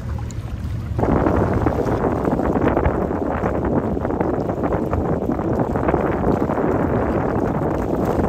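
Water rushes and churns against a passing ship's hull.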